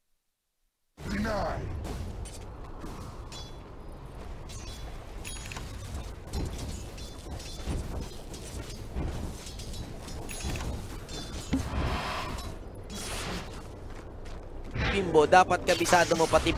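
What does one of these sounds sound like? Video game spell and combat effects crackle and clash.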